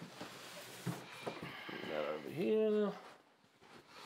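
Cardboard scrapes and thumps as a large box is lifted off.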